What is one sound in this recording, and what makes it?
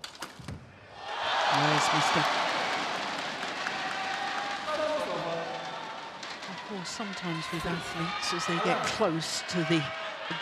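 A large crowd applauds.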